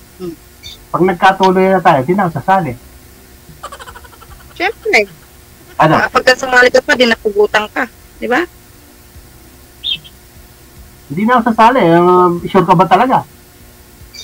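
A middle-aged woman talks over an online call.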